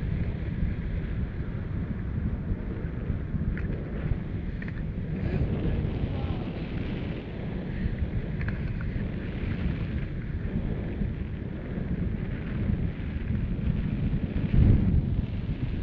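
Wind rushes loudly past the microphone throughout.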